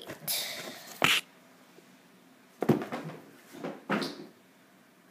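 A heavy figure knocks and thuds on a wooden table.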